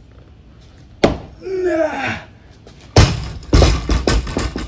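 A heavy barbell drops and thuds on the ground.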